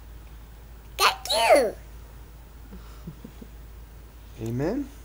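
A toddler laughs and squeals up close.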